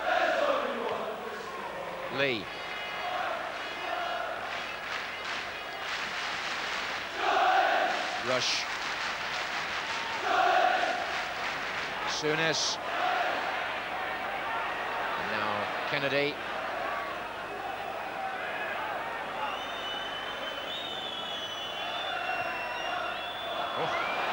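A large crowd roars and murmurs in an open stadium.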